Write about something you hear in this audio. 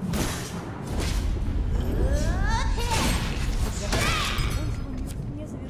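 Magic spell effects whoosh and crackle with rising shimmering tones.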